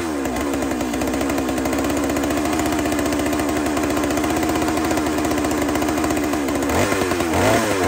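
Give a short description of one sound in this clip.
A chainsaw engine idles with a steady rattling putter.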